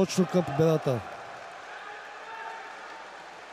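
A crowd applauds and cheers in a large echoing hall.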